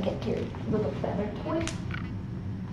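Bare feet step softly on a hard floor.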